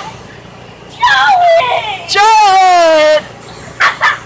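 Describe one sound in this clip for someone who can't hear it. A young girl screams in a high, wavering voice.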